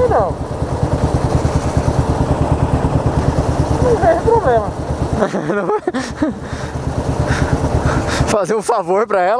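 A motorcycle engine idles with a steady low throb close by.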